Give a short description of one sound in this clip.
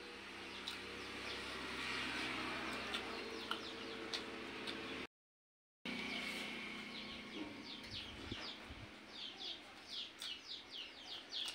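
A woman chews and smacks her lips close by.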